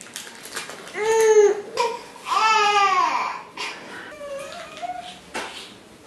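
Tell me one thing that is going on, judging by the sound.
A baby squeals and babbles loudly close by.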